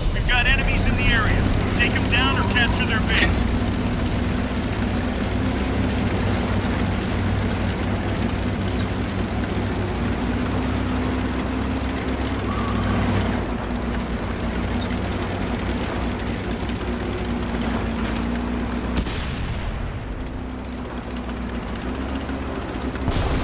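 Tank tracks clatter and squeak over the ground.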